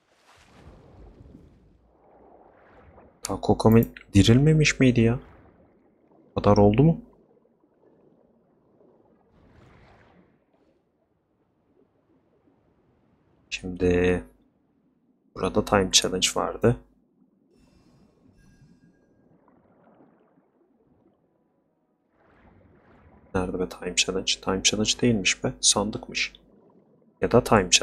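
Water swishes softly as a swimmer glides through it.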